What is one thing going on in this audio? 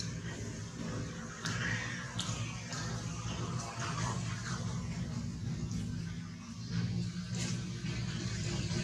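A baby monkey suckles with soft smacking sounds.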